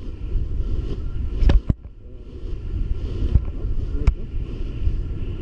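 Wind rushes and buffets loudly against a microphone.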